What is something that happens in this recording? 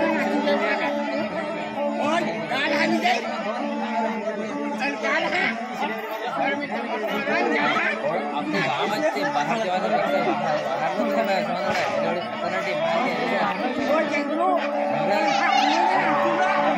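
A crowd of young people sing and chant together outdoors.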